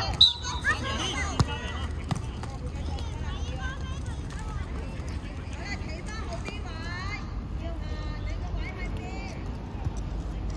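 Children shout and call out across an open outdoor court.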